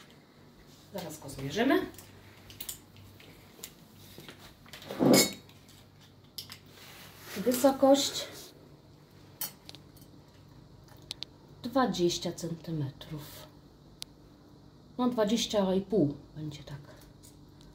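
A woman speaks calmly close by, in short phrases.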